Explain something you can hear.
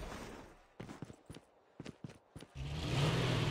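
Footsteps thud on a dirt road.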